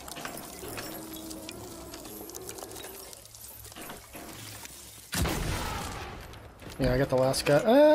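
Gunfire cracks and booms in quick bursts.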